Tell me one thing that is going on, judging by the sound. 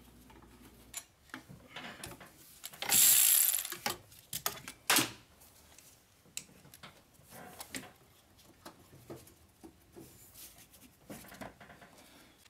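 Metal tools click and clatter against an engine.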